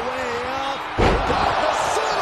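A heavy body slams down onto a wrestling mat with a thud.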